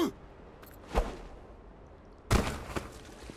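A character lands heavily on stone with a thud.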